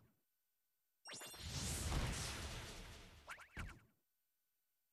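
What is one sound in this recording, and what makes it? A flying creature whips up a roaring gust of wind that slowly fades.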